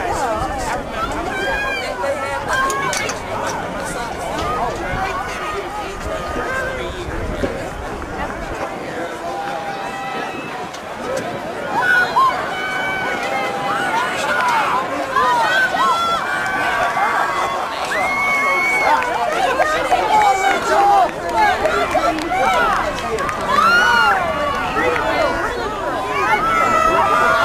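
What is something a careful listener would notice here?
A crowd of men and women talks and cheers outdoors, growing louder.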